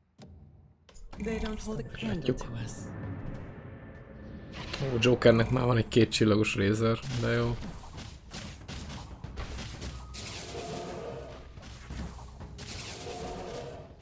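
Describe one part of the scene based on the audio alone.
Game sound effects clash and chime during a battle.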